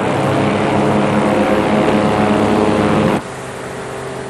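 A propeller plane's engine roars loudly and steadily.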